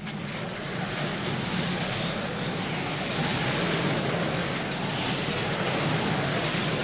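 Magic spells crackle and blast in a video game battle.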